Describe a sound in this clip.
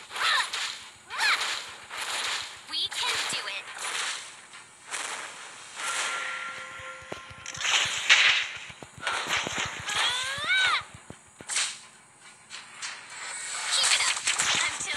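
Game sound effects of spell blasts and hits whoosh and clash throughout.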